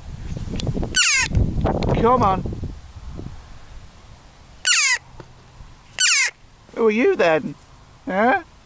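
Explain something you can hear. A jackdaw gives sharp, squeaky calls close by, again and again.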